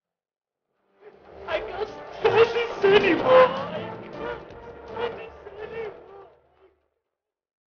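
A man sobs loudly close by.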